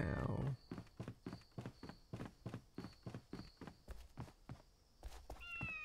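Footsteps tap on a hard floor at a steady pace.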